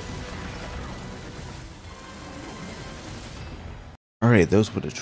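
Loud magic blasts and explosions crackle and boom.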